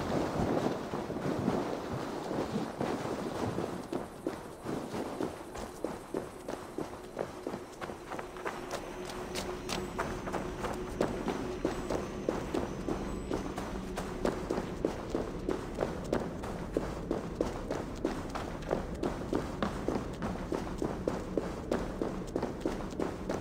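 Footsteps thud quickly on stone and dirt.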